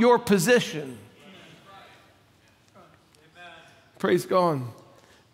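A middle-aged man speaks with animation through a microphone in an echoing hall.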